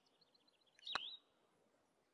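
A putter taps a golf ball.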